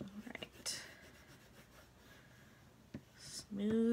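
A glue stick rubs across paper.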